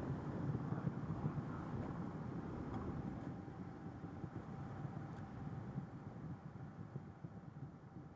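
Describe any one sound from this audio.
Rocket engines roar with a deep, steady rumble that slowly fades.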